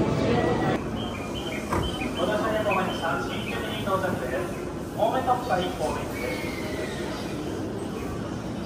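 Adults murmur and chat nearby in a crowd.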